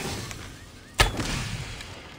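A bowstring twangs sharply as an arrow is loosed.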